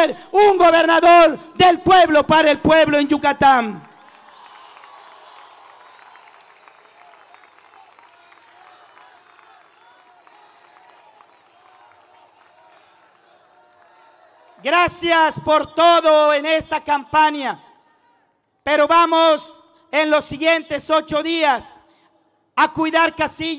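A man shouts forcefully into a microphone over loudspeakers, echoing outdoors.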